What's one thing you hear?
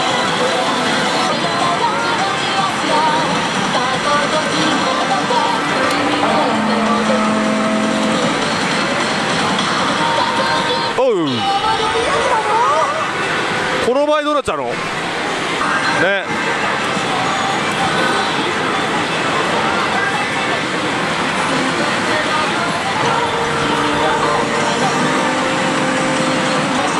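A slot machine plays loud electronic music and jingles.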